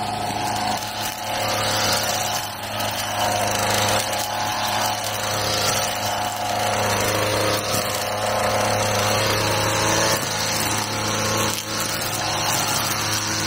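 A trimmer line whips and cuts through grass and leafy plants.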